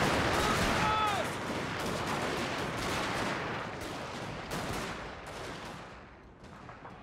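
A battle roars with many soldiers fighting.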